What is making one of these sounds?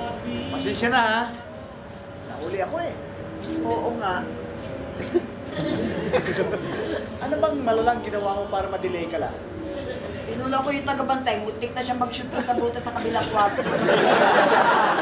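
An elderly man speaks with emotion.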